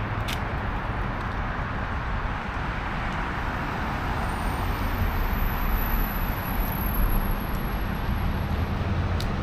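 Traffic rumbles steadily on a nearby street outdoors.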